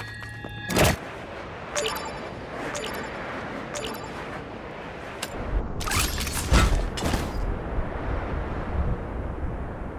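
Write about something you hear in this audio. Wind rushes steadily during a fall through the air.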